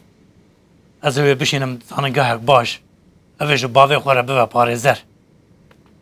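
A middle-aged man speaks with animation close by.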